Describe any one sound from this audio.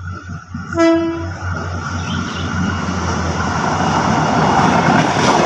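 A diesel train rumbles closer along the tracks, growing louder.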